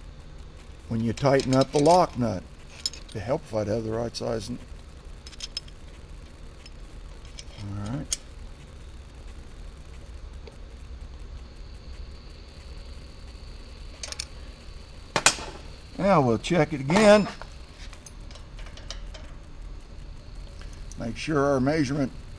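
An older man talks calmly, close by.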